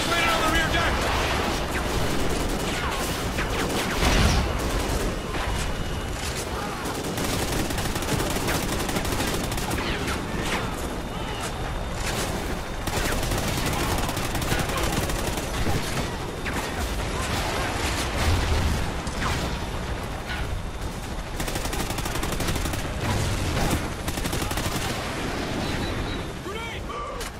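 Helicopter rotors thump overhead.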